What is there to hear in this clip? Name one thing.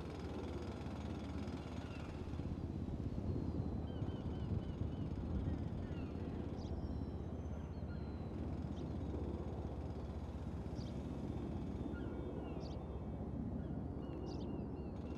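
A helicopter engine idles nearby with a low, steady rumble.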